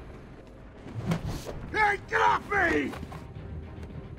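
Punches thud in a fight.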